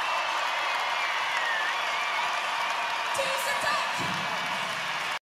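A large crowd cheers and screams loudly.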